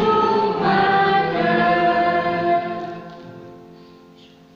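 A man sings a slow tune nearby, which fades out.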